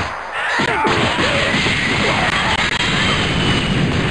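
An energy blast fires with a roaring whoosh in a video game.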